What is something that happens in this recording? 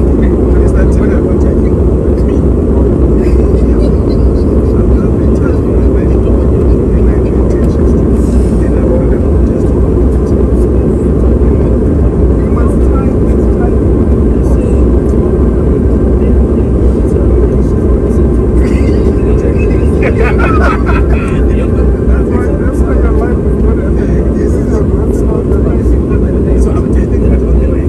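A jet engine roars steadily inside an aircraft cabin.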